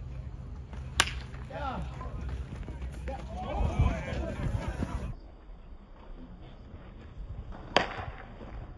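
A metal bat cracks sharply against a baseball.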